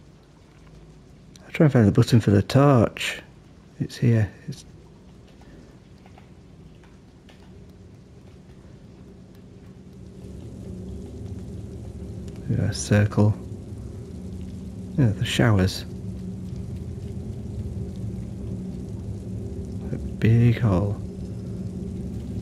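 A low droning hum fills a large echoing space.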